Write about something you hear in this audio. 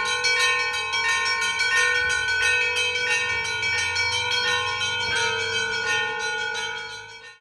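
Church bells ring in a quick, steady peal nearby.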